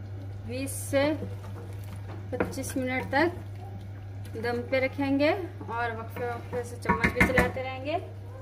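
A ladle scrapes and clinks against a metal pot.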